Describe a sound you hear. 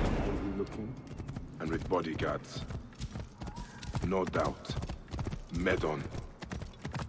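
A horse's hooves clop on rocky ground.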